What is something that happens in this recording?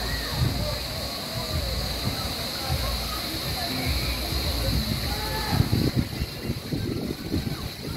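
Several people chat and call out nearby outdoors.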